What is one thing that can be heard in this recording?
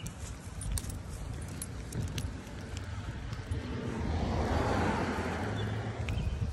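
Footsteps scuff on pavement.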